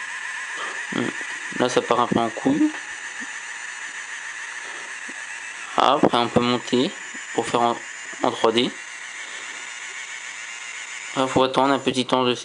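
A small electric pen motor whirs steadily.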